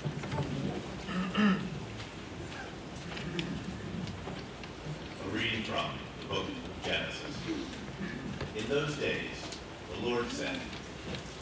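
An elderly man reads aloud calmly.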